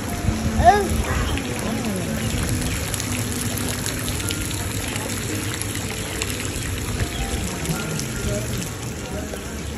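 Rain patters lightly on water.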